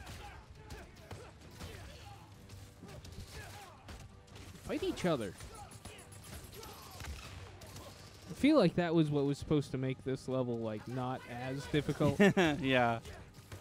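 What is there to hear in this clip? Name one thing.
Punches and thuds from a video game land in quick bursts.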